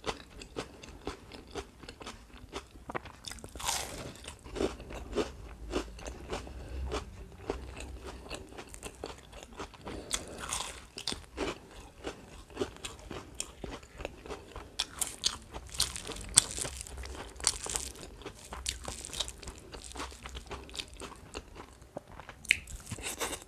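A young woman chews and smacks her lips loudly close to a microphone.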